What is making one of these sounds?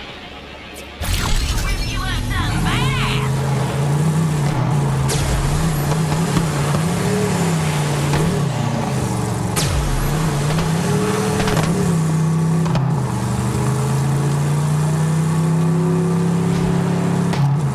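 A small vehicle's engine drones and rises and falls in pitch.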